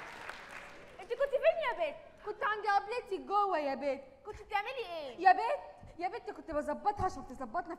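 Another young woman speaks loudly and with animation.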